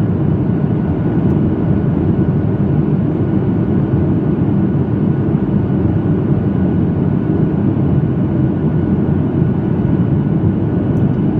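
A jet engine roars steadily, heard from inside an airliner cabin.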